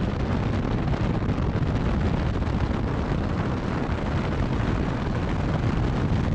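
A helicopter's rotor thuds loudly overhead.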